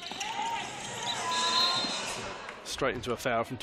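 A crowd cheers in an echoing hall.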